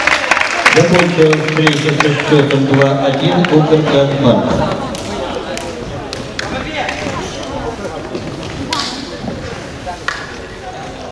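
A ball is kicked and thuds in a large echoing hall.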